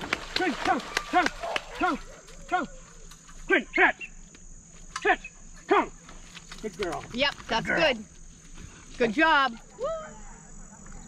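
A dog barks and yelps excitedly, close by.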